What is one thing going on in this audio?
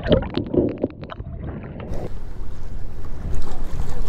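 Water splashes and drips as a trap is hauled up out of the water.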